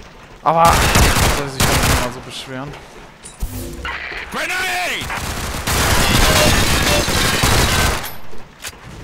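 Rapid gunfire rattles loudly in bursts.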